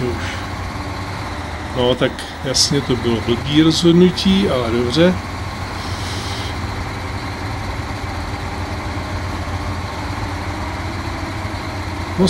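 A heavy truck engine rumbles steadily as it hauls a load over rough ground.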